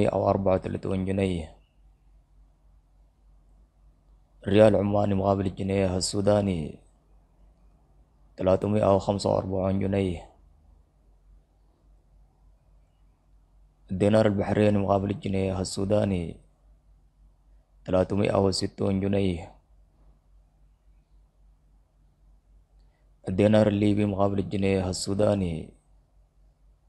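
A man speaks calmly and close to the microphone, in short phrases with pauses between them.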